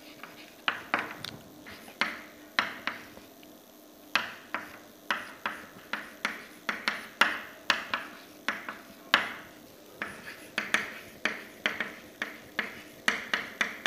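Chalk taps and scratches on a blackboard.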